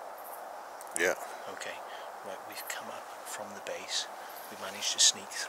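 A man speaks close by, in a low voice.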